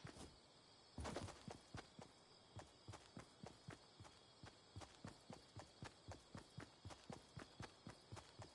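Quick footsteps patter in a steady rhythm.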